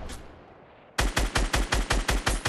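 A rifle fires in a rapid string of shots.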